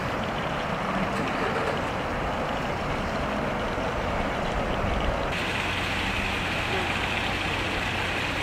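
Wind blows steadily outdoors by open water.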